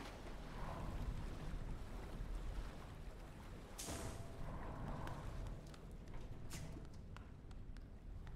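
Water rushes and splashes.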